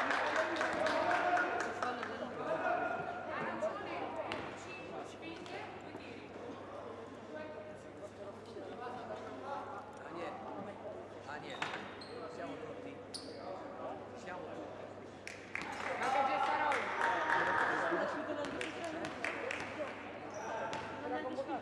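Players shout and call out in a large echoing hall.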